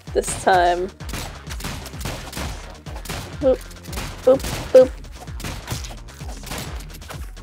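Gunshots crack rapidly and repeatedly.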